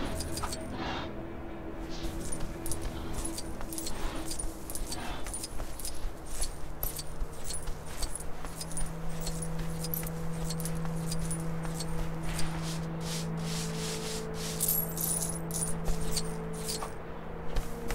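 Coins clink and jingle as they are collected.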